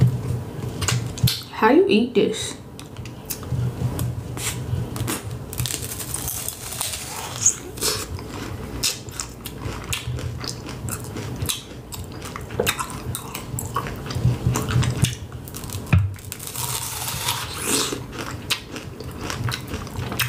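A young woman crunches loudly into a hard candy-coated apple close to a microphone.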